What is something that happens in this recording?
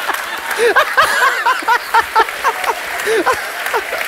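A middle-aged man laughs loudly into a microphone.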